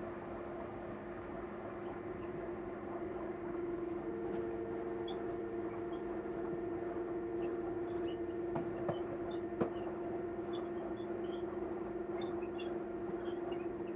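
A train hums steadily as it rolls along the rails.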